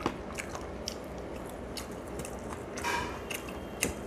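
A man chews food with his mouth close to a microphone.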